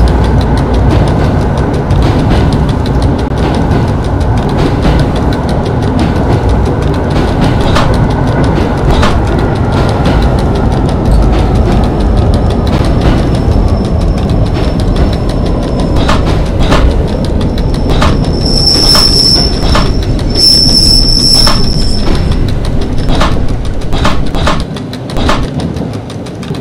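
A train's motor hums and rumbles steadily as it rolls along the tracks.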